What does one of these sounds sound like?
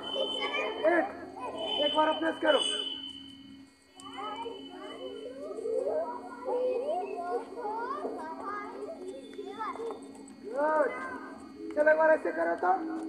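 A group of children call out and chatter together outdoors.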